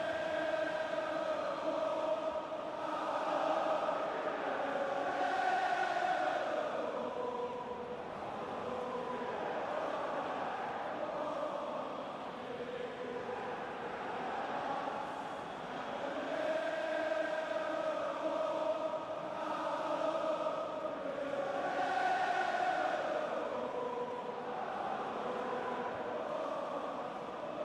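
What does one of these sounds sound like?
A large stadium crowd sings and chants loudly.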